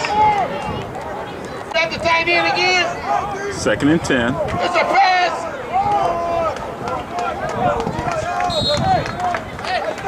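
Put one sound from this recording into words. A crowd of men and women shouts and cheers outdoors.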